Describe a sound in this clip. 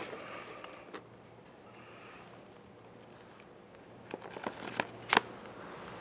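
Banknotes rustle as they are flicked through.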